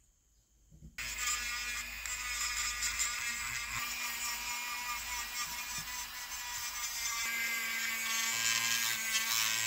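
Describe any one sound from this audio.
A small rotary tool whirs at high speed while polishing metal.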